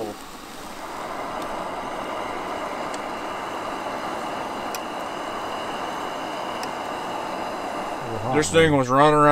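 Food sizzles and spatters in a hot frying pan.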